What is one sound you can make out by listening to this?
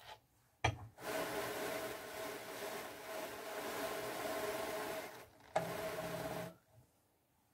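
A hand-cranked carding drum whirs steadily as it turns.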